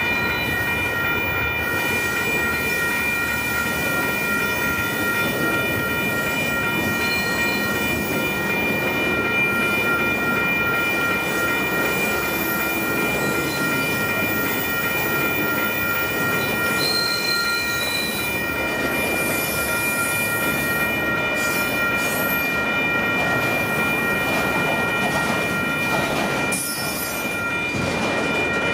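Train wheels squeal in a steady high whine on the rails.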